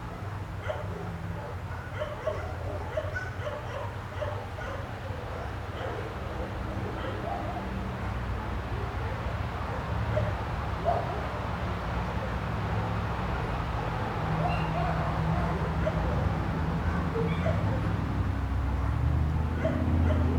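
A small caged bird chirps now and then.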